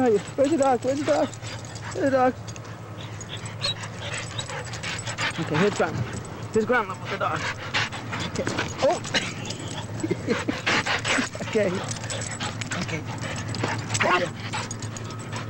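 A dog whines and yelps up close.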